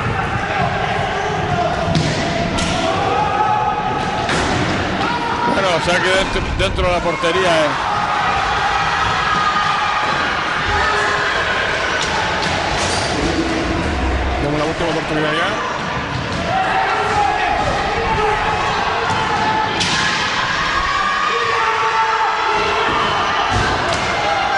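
A crowd of spectators murmurs and shouts in the echoing hall.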